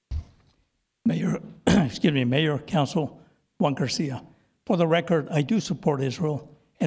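An older man speaks steadily into a microphone, reading out.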